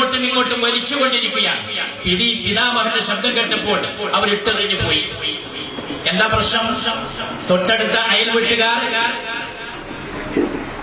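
A man speaks forcefully into a microphone through a loudspeaker, in an echoing hall.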